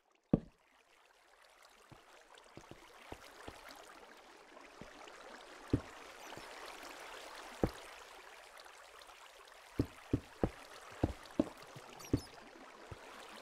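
Water flows and splashes steadily.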